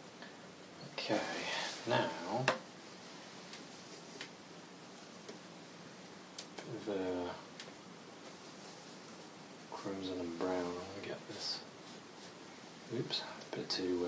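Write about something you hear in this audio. A man speaks calmly close by, in short phrases.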